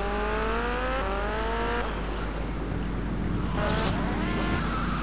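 A motorcycle engine revs and rises in pitch as it speeds up.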